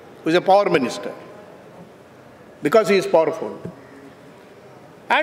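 An elderly man reads out slowly into a microphone, in short bursts with pauses.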